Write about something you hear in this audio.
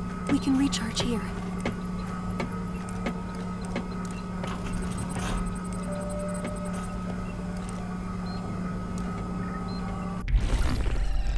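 A low electrical hum drones steadily.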